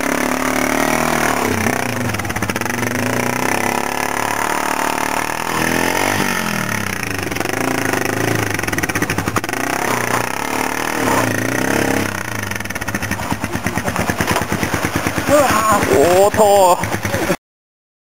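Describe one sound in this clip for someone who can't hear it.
A motorcycle engine chugs and revs up close.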